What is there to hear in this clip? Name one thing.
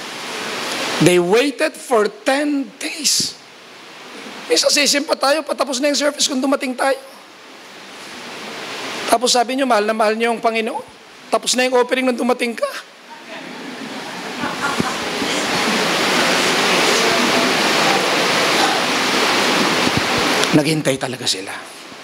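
A man speaks calmly through a microphone in a large hall with an echo.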